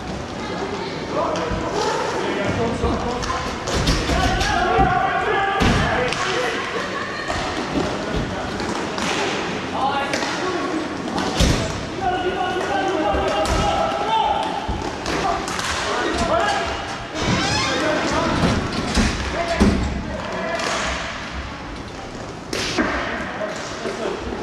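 Skates roll and scrape across a hard rink floor, echoing in a large hall.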